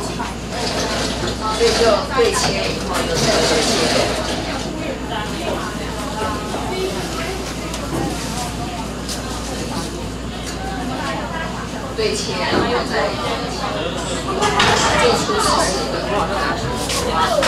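A middle-aged woman talks with animation into a microphone, heard through a loudspeaker.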